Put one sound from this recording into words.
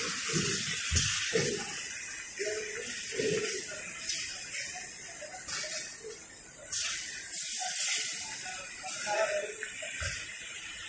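Machines whir and clatter steadily.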